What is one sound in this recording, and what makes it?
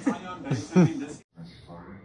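A teenage girl laughs up close.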